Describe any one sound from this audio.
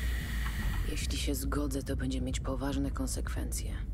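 A young man talks calmly, close to a microphone.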